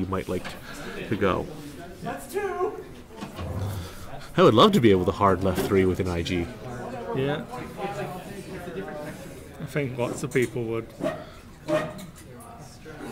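Two men talk calmly nearby.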